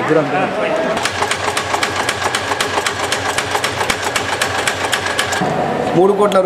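A machine clatters rapidly.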